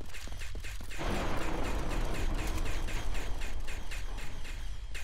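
A loud roaring blast rumbles close by.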